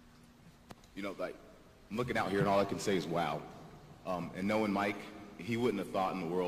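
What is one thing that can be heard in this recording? A young man speaks into a microphone in an echoing hall, calmly and clearly.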